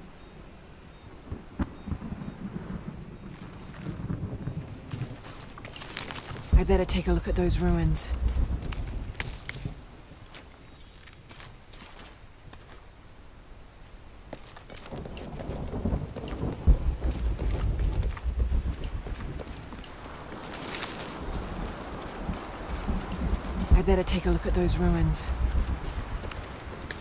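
Footsteps walk and climb over stone.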